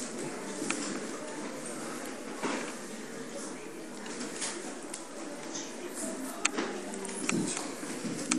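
A pen scratches across paper.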